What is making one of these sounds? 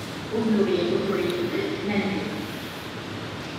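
A woman speaks briefly close to a phone microphone.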